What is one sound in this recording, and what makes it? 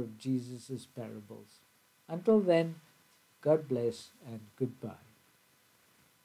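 An elderly man speaks calmly and closely into a microphone.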